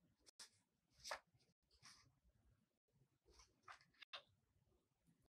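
Paper rustles and crinkles as it is folded.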